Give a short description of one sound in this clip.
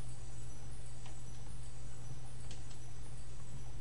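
Bright twinkling chimes ring out now and then.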